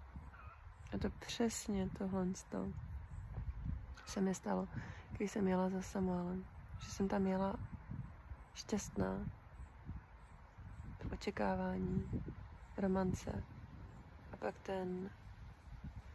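A middle-aged woman speaks calmly and quietly, close by.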